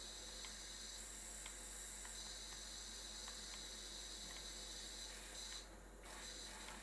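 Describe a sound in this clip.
A pressure washer sprays water in a steady hiss.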